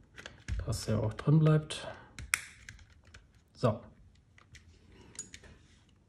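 Small plastic parts click and tap as a handheld device is handled.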